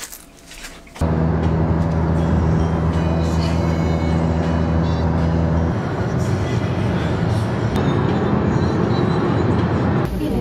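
A car engine hums and the road rumbles while driving.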